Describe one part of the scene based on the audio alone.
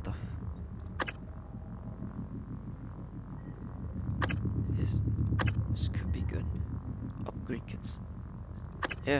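Short electronic menu clicks sound now and then.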